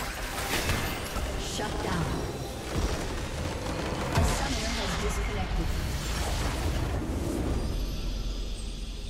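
Magical blasts and zaps crackle in quick succession.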